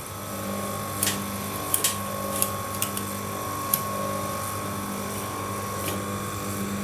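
Metal parts click as a chain is clamped and moved.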